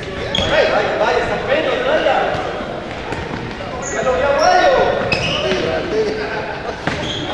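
Men shout to each other across an echoing hall.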